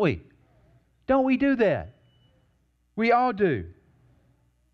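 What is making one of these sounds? A man speaks through a microphone in short, expressive bursts.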